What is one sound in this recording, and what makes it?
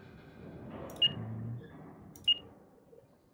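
A keypad beeps sharply as its buttons are pressed.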